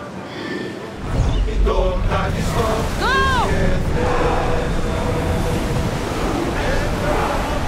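Strong wind roars over rough sea.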